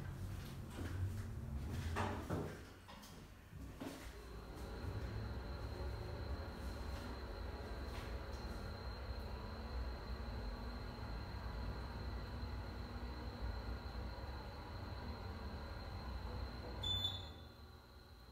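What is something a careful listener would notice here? An elevator car hums and rumbles low as it travels.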